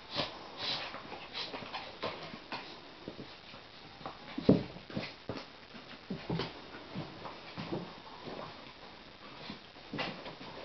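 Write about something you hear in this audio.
Dog claws click and scrabble on a wooden floor.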